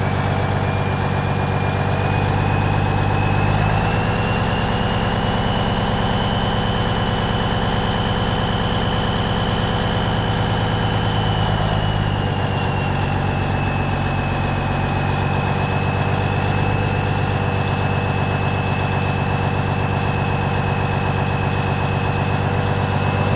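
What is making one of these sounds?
A truck's diesel engine rumbles loudly inside the cab and shifts through gears as it drives.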